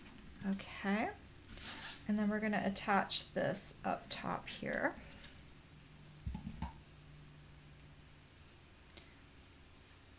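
Paper and card rustle softly as hands handle them.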